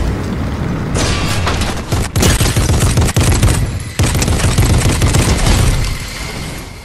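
A heavy mounted gun fires in rapid bursts.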